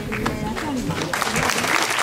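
An audience applauds outdoors.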